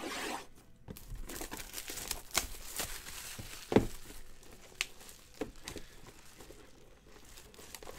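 Plastic wrapping crinkles and rustles as it is torn off.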